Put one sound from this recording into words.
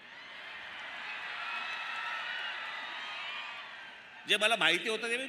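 A large crowd cheers and whistles outdoors.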